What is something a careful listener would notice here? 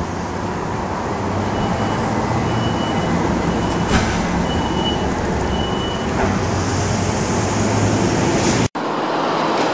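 Sectional overhead doors roll open with a motor hum.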